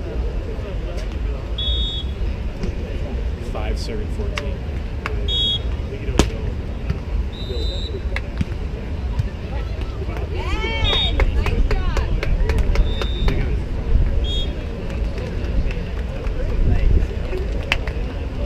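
Hands strike a volleyball with sharp slaps.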